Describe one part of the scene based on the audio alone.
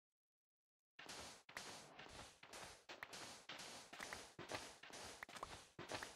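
Sand crunches with quick, repeated digging.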